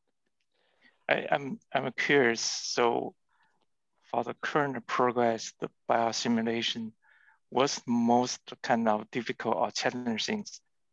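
A second man answers with animation over an online call.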